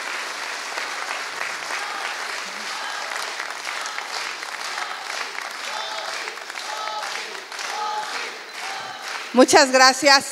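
A crowd cheers and chants in a large room.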